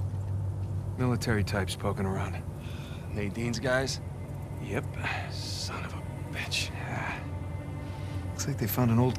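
A second man answers in a low voice.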